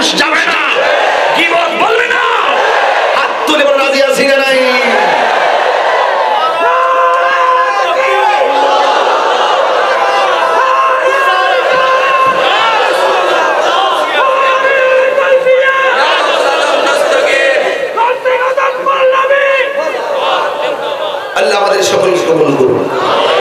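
A young man sings loudly and with feeling through a loudspeaker, echoing outdoors.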